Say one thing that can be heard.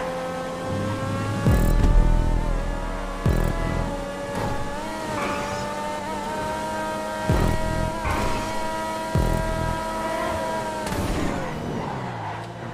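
A racing car engine roars at high revs, with its pitch shifting up and down as it changes gear.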